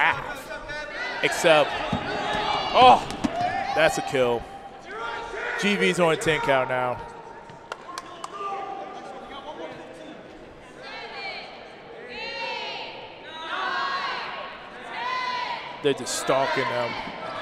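Balls bounce and smack on a hard court floor.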